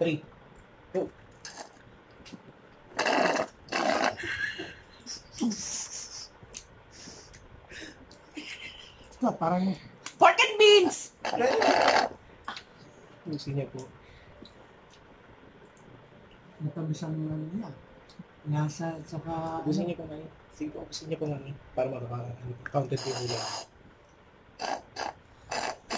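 A woman slurps loudly through a straw.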